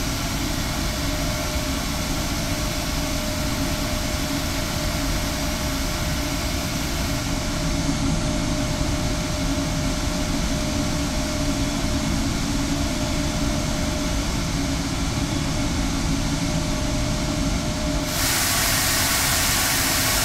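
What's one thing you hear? The turbofan engines of a twin-engine jet airliner roar steadily on approach.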